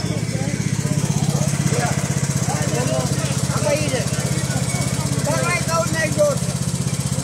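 A small engine idles with a steady low throb.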